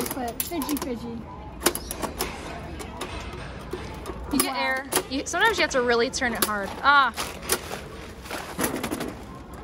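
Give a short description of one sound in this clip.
A metal crank on a coin machine turns with ratcheting clicks.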